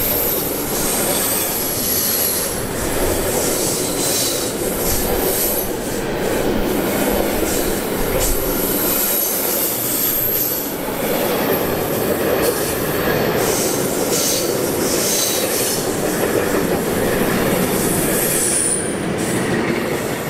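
Train wheels screech and squeal on the rails.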